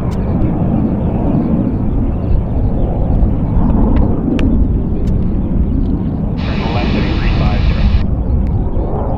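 A jet roars loudly overhead, a deep rumble that swells and wavers.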